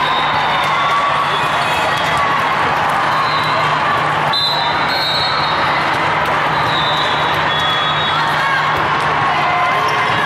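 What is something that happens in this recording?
A volleyball is struck with hard slaps.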